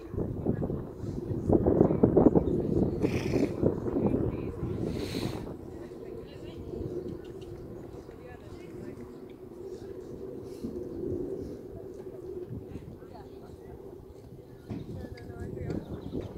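A horse's hooves thud softly on sand as it trots.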